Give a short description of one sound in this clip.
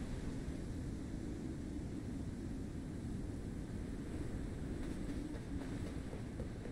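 Wind roars steadily in a snowstorm.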